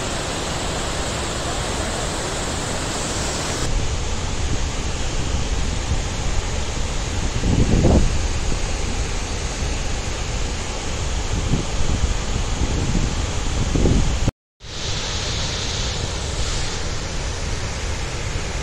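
A large waterfall roars close by as it plunges into a pool.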